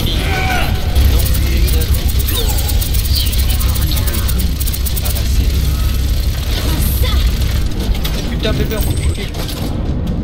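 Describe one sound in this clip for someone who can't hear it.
Rapid gunfire rattles and booms in a game.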